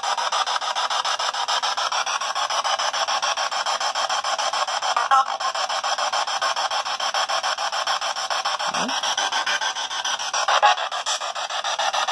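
A small radio sweeps rapidly through stations, giving a steady stream of choppy static bursts.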